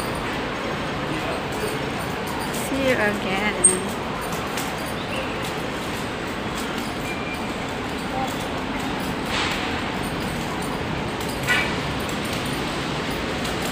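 Footsteps of people walking sound faintly.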